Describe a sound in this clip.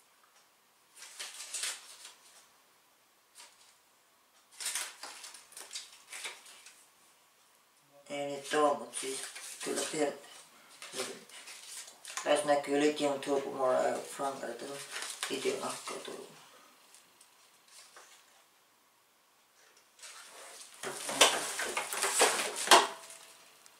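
Plastic packaging rustles and crinkles close by.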